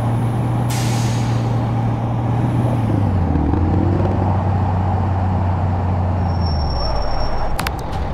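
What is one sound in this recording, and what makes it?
A truck engine rumbles steadily and its pitch drops as the truck slows down.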